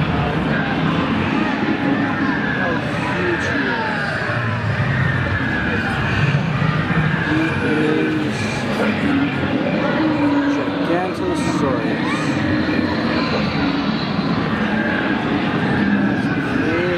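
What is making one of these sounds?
Many people chatter in a large, echoing hall.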